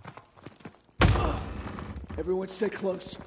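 A heavy wooden door bangs open.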